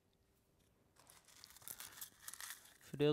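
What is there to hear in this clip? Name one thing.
Fingers crumble dry garnish over a plate.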